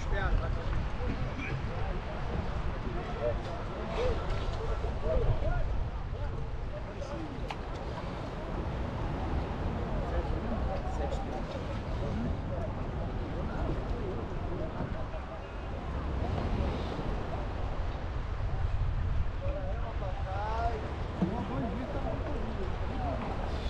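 Paddles dip and pull through the water.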